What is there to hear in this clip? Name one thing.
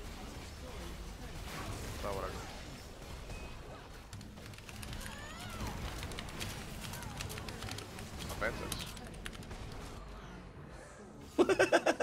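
Game sound effects of a battle clash and whoosh.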